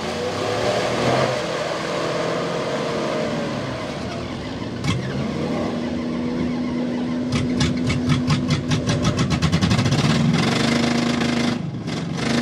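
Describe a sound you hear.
A truck engine roars as it churns through deep mud.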